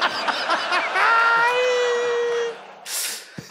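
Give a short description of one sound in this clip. A man laughs loudly and heartily.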